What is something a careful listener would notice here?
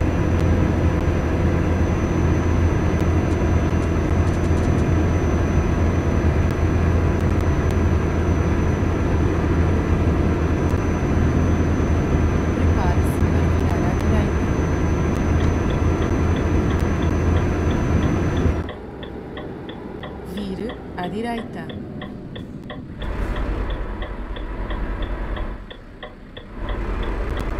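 A truck engine drones with a low, steady hum.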